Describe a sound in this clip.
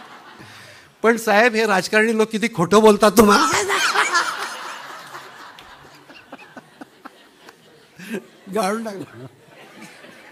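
An elderly man laughs loudly into a microphone.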